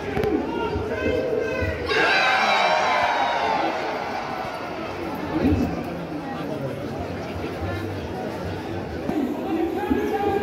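A large crowd of men and women cheers and shouts outdoors.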